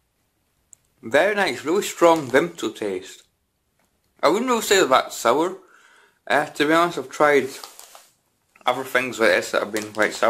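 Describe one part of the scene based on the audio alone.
A young man talks calmly and close by, in bursts with pauses.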